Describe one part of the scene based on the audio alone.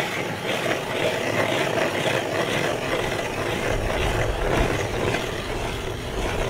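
A hand auger grinds and scrapes as it drills through ice.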